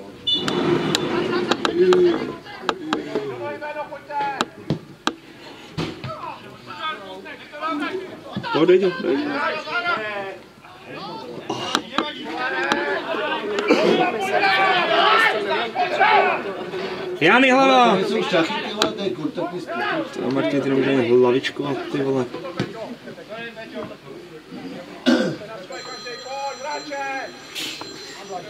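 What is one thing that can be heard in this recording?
Men shout and call out across an open field.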